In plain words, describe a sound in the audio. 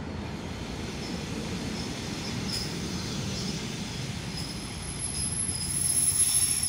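Train wheels squeal and clatter on the rails as the train pulls in.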